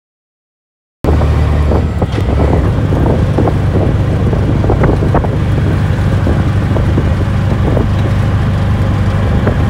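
An auto-rickshaw engine rumbles steadily while driving along a street.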